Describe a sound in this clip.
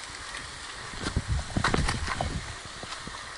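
Water splashes as a swimmer moves through a pool.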